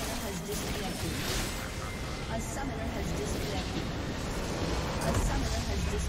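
Spells and attacks burst and clash in a video game battle.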